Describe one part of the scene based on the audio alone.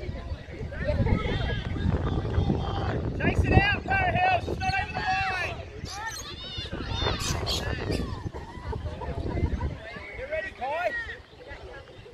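Children shout and cheer outdoors at a distance.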